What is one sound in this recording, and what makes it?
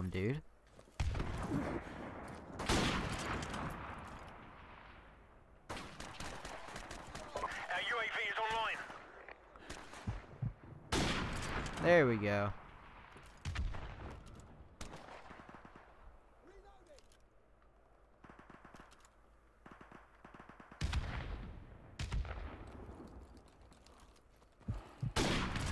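A sniper rifle fires loud shots that echo away.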